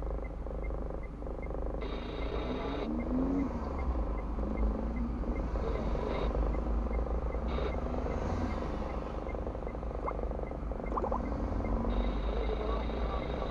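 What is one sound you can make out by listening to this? An engine idles with a low, steady rumble from inside the car.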